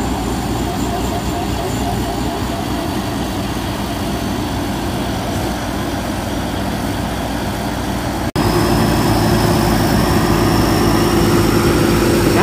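Farm machine engines rumble and drone steadily close by.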